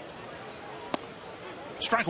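A baseball pops into a catcher's mitt.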